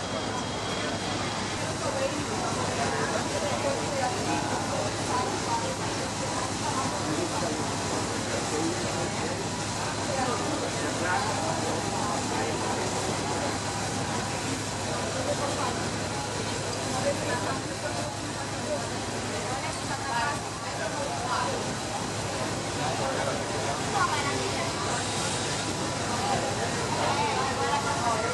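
An electric locomotive rolls along a rail track.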